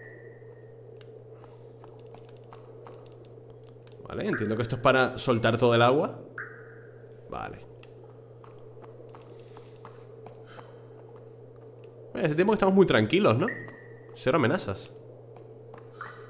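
Footsteps tap lightly on a stone floor.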